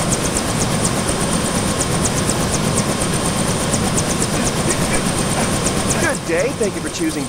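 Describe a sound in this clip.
A helicopter rotor whirs steadily.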